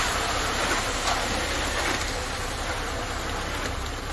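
A shovel scrapes through wet concrete.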